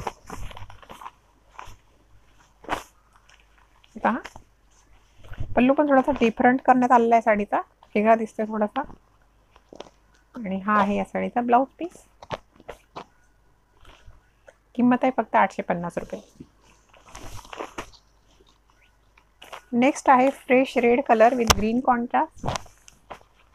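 Cloth rustles as a woman unfolds and handles fabric.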